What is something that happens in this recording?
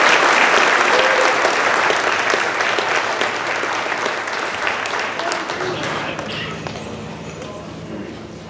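An audience applauds loudly in a large hall, then the clapping fades.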